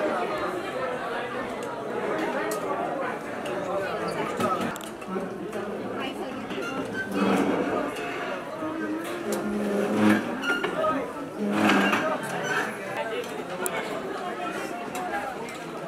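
Serving spoons clink against metal trays and plates.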